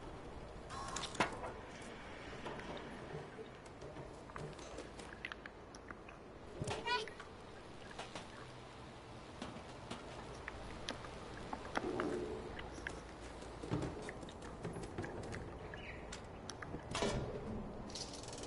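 A cat's paws patter lightly on a metal roof.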